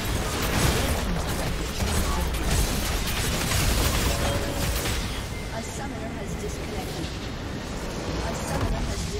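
Magic blasts and impacts crackle and boom in a hectic fantasy battle.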